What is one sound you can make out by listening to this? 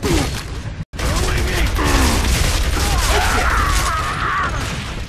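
A rifle fires rapid shots in a video game.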